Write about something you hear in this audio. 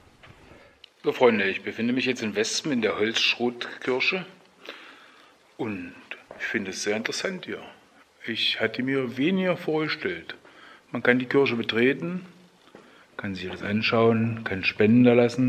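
An elderly man talks calmly, close up.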